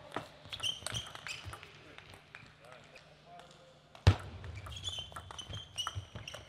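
Sneakers squeak on the floor as players shift.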